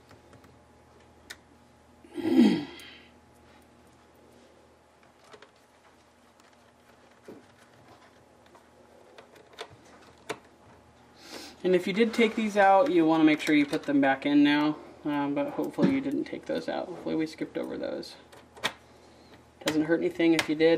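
Small plastic parts click and tap under fingers.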